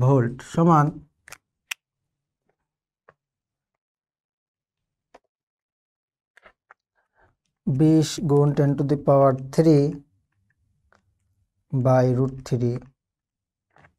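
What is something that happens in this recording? A young man speaks calmly and clearly into a close microphone, in short bursts.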